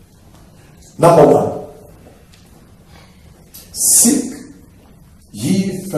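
A man speaks loudly into a microphone in short bursts, heard through a loudspeaker in an echoing room.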